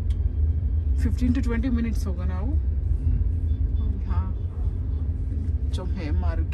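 Voices of a crowd outside are heard muffled through a car window.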